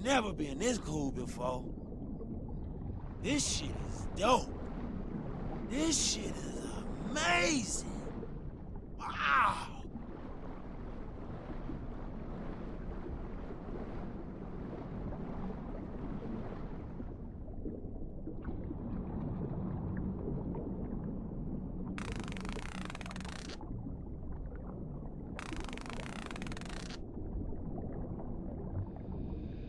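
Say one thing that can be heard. Water rumbles low and muffled, as if heard underwater.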